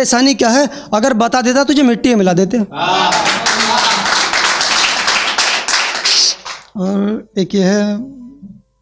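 A young man recites with feeling into a microphone.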